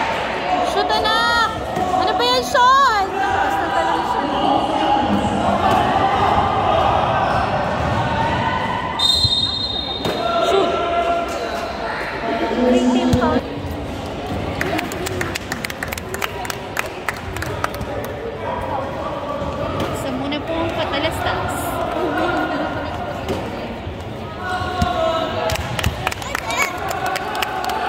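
Children's voices chatter and shout in a large echoing gym.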